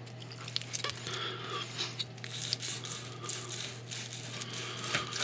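A knife and fork scrape and tap against a plate.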